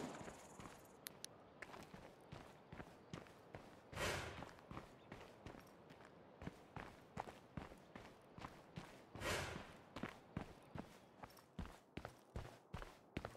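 Heavy boots thud in footsteps on hard ground.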